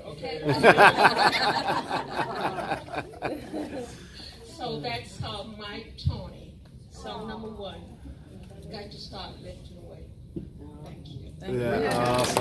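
A woman speaks with animation into a microphone over a loudspeaker in a large echoing room.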